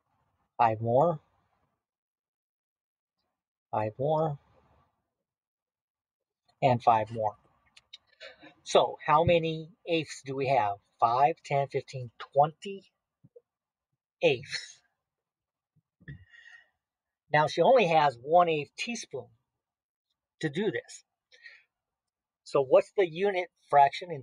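A middle-aged man speaks calmly through a microphone, explaining in short phrases.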